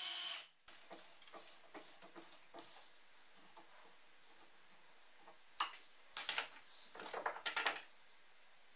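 Metal tools clink and click against a vise.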